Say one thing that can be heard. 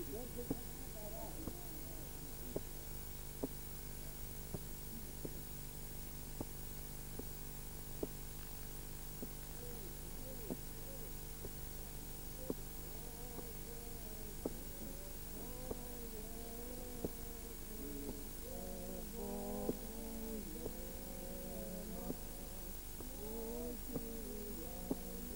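Axes chop into a tree trunk with sharp, repeated thuds.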